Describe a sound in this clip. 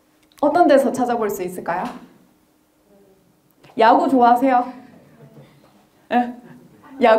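A young woman speaks with animation through a microphone.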